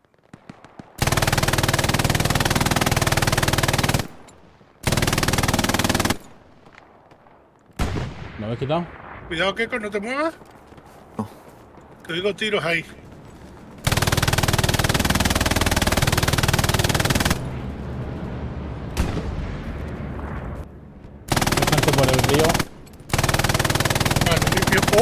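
A machine gun fires long, loud bursts.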